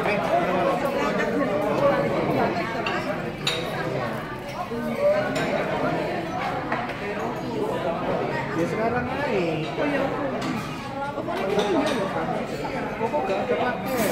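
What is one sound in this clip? Men and children chatter in a large room.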